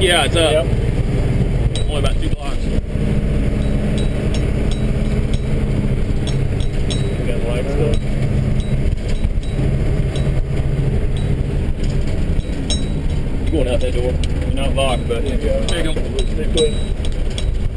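A man speaks loudly over the engine noise now and then.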